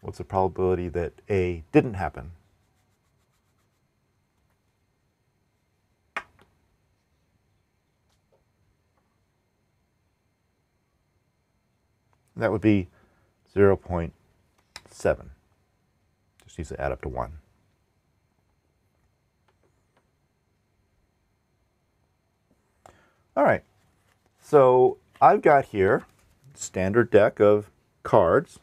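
A middle-aged man speaks calmly into a close microphone, pausing often.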